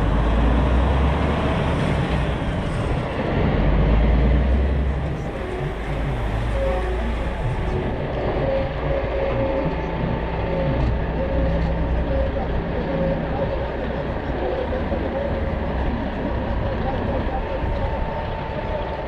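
Air rushes past an open window.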